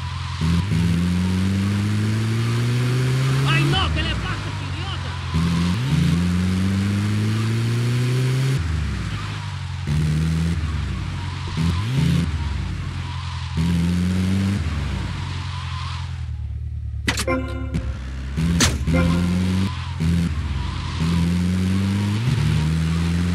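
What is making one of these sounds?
A vehicle engine revs up and down as it shifts through gears.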